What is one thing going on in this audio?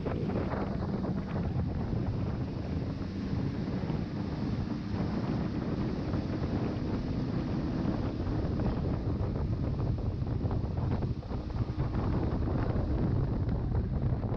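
A boat engine roars steadily at speed.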